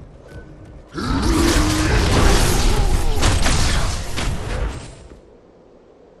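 A magical energy blast crackles and roars loudly.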